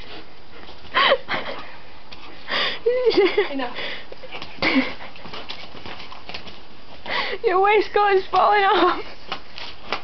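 A young woman laughs and talks excitedly nearby.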